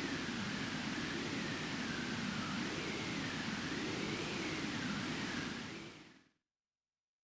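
Waves roll and wash across open sea.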